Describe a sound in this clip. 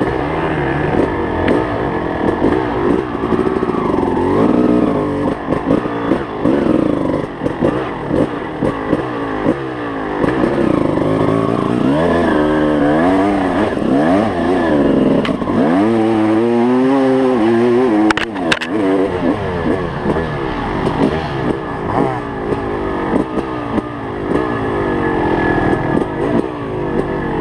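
An enduro dirt bike engine revs up and down as it climbs over rough ground.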